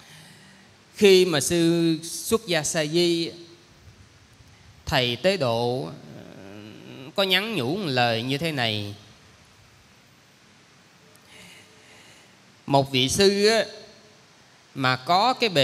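A young man speaks calmly into a microphone, heard through a loudspeaker, with pauses.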